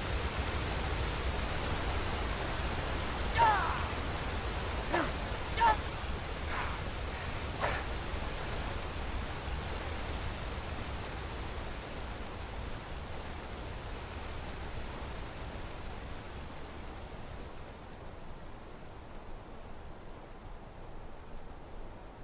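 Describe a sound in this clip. Footsteps crunch softly over grass and dirt.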